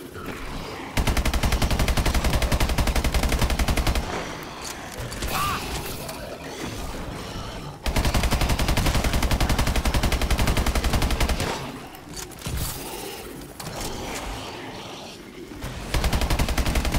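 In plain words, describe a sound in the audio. An automatic gun fires in rapid bursts.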